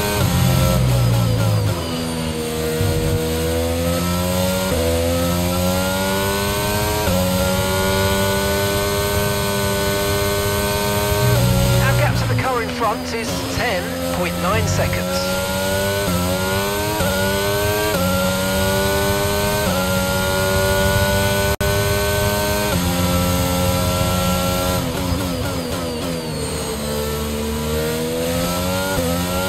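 A racing car engine screams, rising in pitch through each gear and dropping sharply on each shift.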